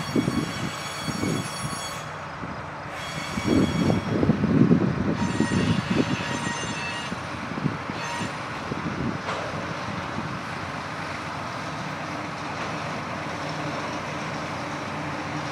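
A diesel locomotive engine rumbles steadily as it approaches.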